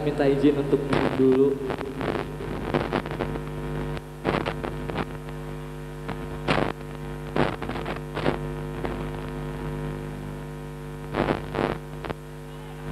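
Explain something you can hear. Drums hit sharply now and then.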